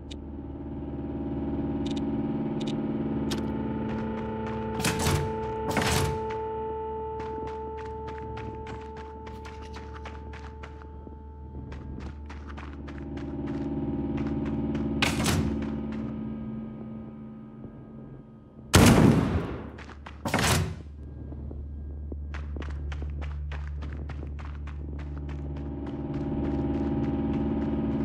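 A low, dark musical drone plays steadily.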